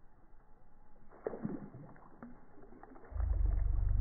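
A small lure splashes into still water.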